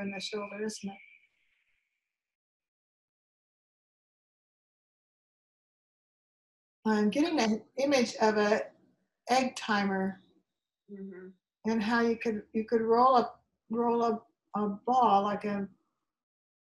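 An older woman speaks calmly and close to the microphone, in short phrases with pauses.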